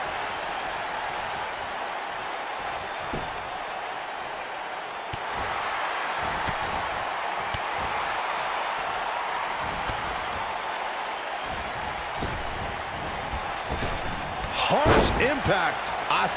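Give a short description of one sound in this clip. Blows and body slams thud on a wrestling mat.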